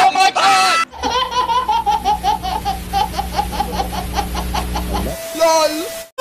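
A baby cries loudly.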